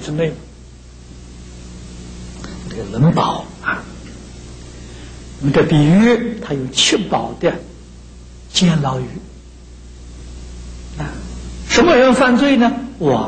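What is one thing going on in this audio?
An elderly man speaks calmly into a microphone, with pauses between phrases.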